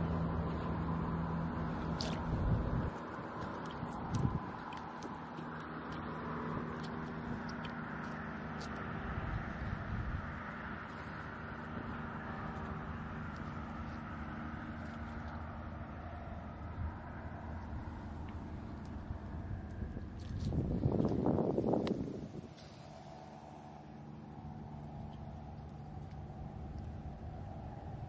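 Shallow water trickles gently over sand and pebbles.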